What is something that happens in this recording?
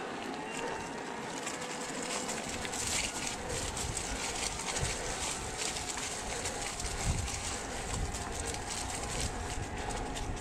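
Bicycle tyres crunch and rattle over dry leaves and gravel.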